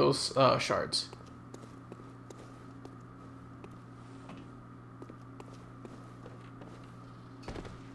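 Footsteps tap lightly on a hard surface.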